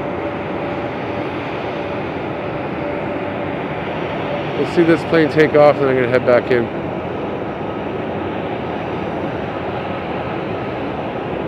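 Jet engines roar steadily in the distance.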